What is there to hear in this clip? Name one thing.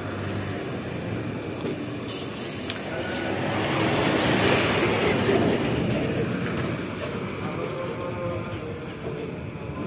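Truck tyres hiss on the road surface.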